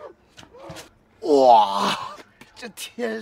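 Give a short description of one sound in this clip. A young man cries out in pain.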